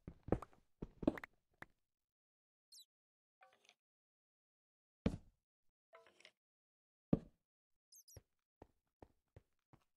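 A pickaxe chips at stone and dirt with quick, dry knocks.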